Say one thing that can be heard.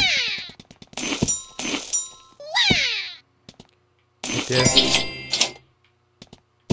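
Short bright chimes ring out as coins are picked up.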